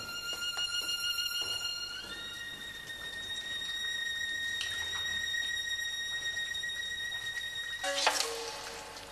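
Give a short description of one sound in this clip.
A fiddle plays high, steady drawn notes.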